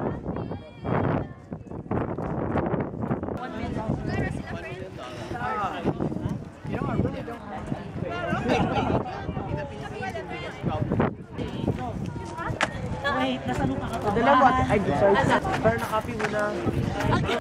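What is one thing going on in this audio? Young girls talk and shout excitedly nearby.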